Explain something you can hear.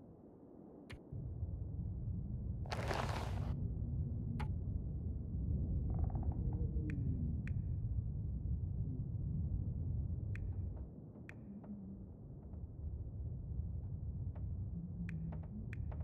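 Short soft clicks tick now and then.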